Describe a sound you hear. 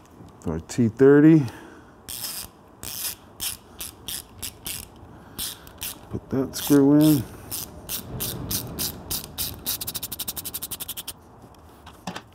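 Metal tools clink and tap against metal parts.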